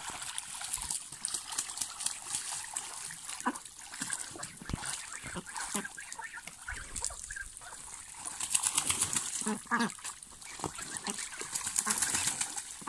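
Ducks quack now and then.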